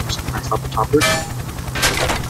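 Glass shatters.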